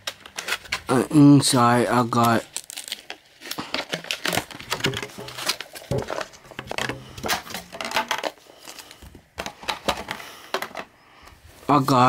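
Plastic packaging crinkles and rustles as it is handled.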